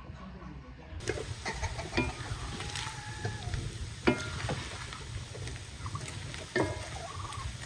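Food sizzles and crackles in a frying pan.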